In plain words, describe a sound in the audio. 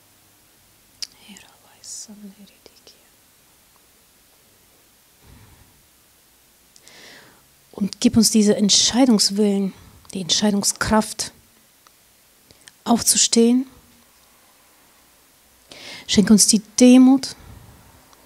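A middle-aged woman speaks calmly into a microphone, in short phrases with pauses.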